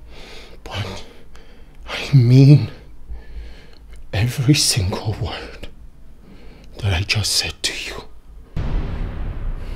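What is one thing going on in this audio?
A man speaks with rising emotion close by, at times raising his voice.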